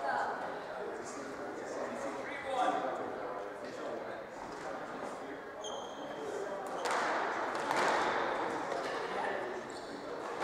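A squash ball smacks against walls with sharp echoing hits.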